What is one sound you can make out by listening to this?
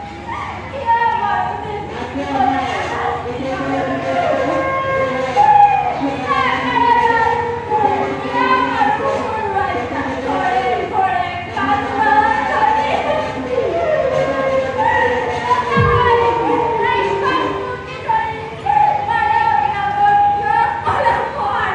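A man sings loudly through a microphone and loudspeakers, with a reverberant sound.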